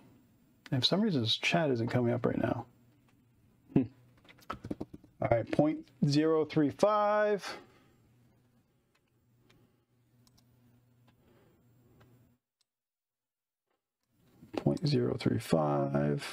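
A man speaks calmly and close into a clip-on microphone, in bursts with pauses.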